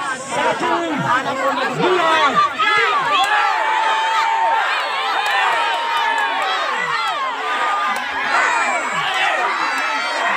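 A large outdoor crowd of men, women and children shouts and cheers excitedly nearby.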